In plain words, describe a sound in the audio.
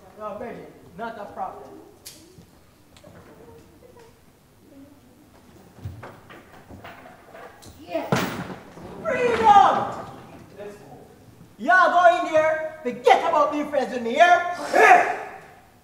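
Young actors speak loudly with animation on a stage.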